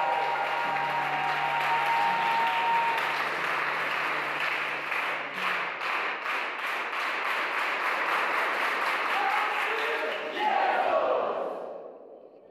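A young woman sings through a microphone in an echoing hall.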